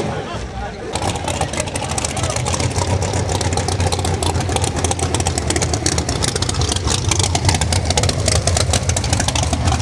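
A race car engine idles with a rough, loud rumble.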